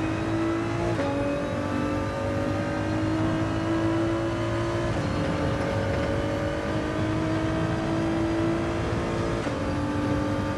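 A racing car's gearbox clicks sharply on each upshift.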